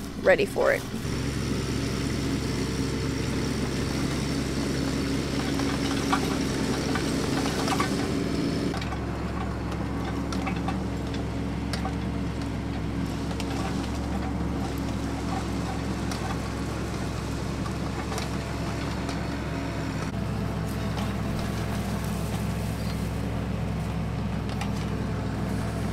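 A small excavator's diesel engine rumbles steadily.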